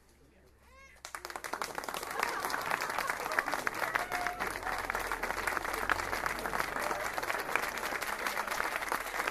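A crowd claps loudly.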